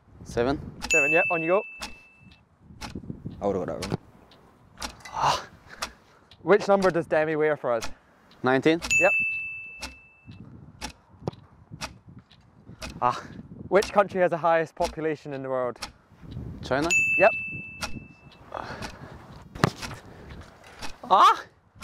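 A young man asks questions aloud, outdoors.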